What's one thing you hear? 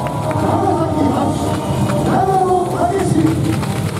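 Smoke jets hiss loudly in bursts.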